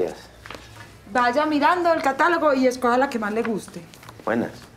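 A woman answers loudly nearby.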